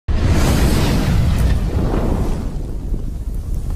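Flames whoosh and roar loudly.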